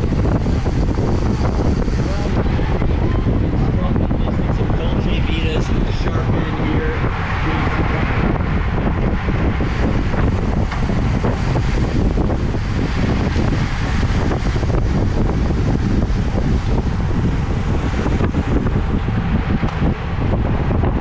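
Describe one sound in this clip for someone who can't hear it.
Wind roars loudly across a moving bicycle.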